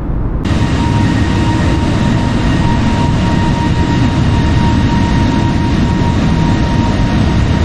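Jet engines roar steadily as an airliner cruises.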